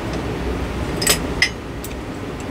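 Glass clicks and clinks as it is twisted into place.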